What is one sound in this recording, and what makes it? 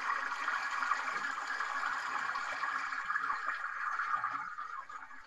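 A stream gurgles and trickles nearby.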